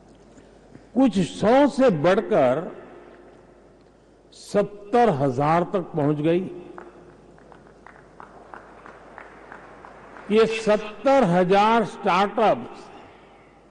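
An elderly man speaks slowly and deliberately into a microphone, in a large room with a slight echo.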